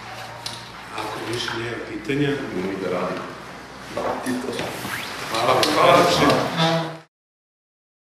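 A middle-aged man speaks with animation.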